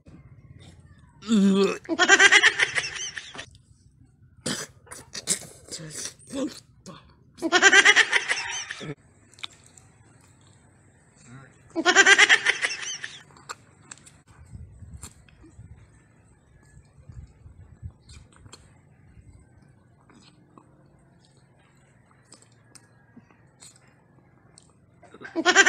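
A young man chews and slurps food noisily, close by.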